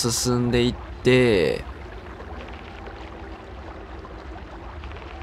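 A small inflatable boat swishes through floodwater.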